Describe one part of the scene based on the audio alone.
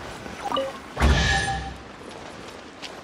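A heavy magical blast crashes down with a whoosh.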